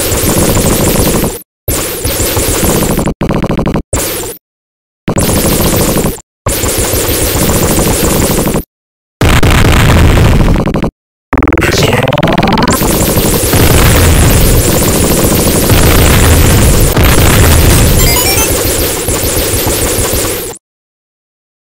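Upbeat electronic game music plays.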